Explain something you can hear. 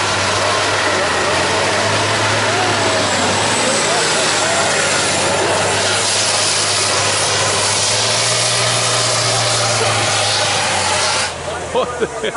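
Truck tyres screech in a smoky burnout.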